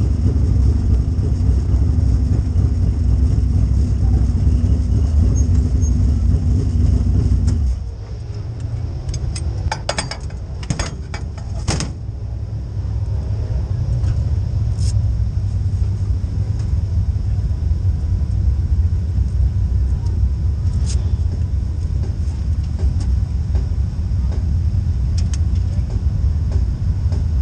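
The V8 engine of a dirt late model race car idles with a deep rumble.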